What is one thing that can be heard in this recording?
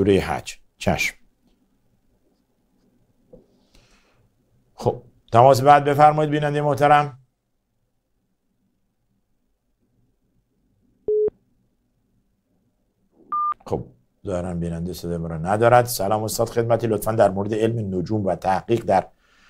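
A man recites in a slow, melodic voice close to a microphone, with long pauses.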